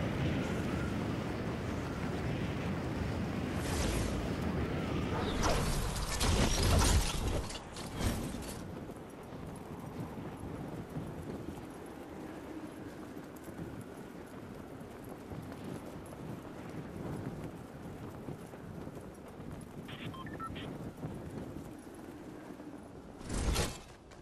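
Wind rushes loudly during a fast fall through the air, then softens to a steady whoosh.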